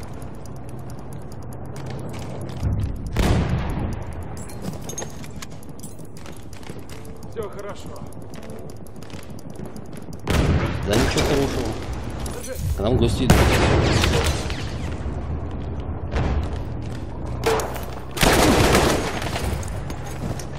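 A machine gun fires in bursts.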